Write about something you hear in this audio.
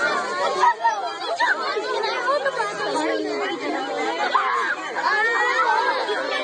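A crowd of children and adults chatter nearby outdoors.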